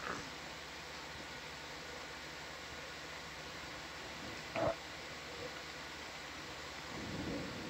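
A soft, muffled underwater hush goes on steadily.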